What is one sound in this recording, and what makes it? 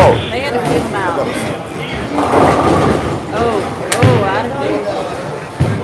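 A bowling ball rolls down a wooden lane with a low rumble.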